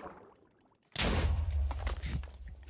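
Water splashes as something plunges in.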